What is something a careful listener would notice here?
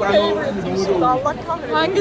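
A second young woman talks with animation nearby.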